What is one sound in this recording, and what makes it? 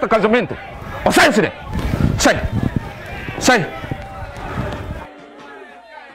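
A second man shouts angrily up close.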